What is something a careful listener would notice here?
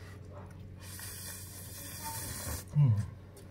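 A middle-aged man slurps noodles loudly.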